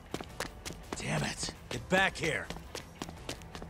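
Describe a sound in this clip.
A young man shouts angrily.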